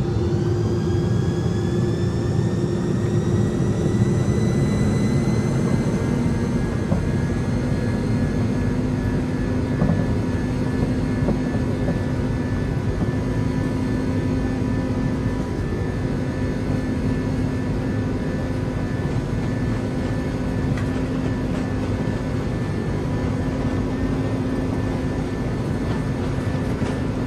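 A jet engine whines and roars steadily, with its pitch rising at first.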